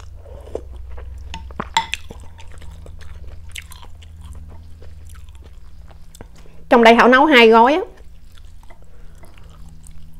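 Chopsticks click against a glass bowl.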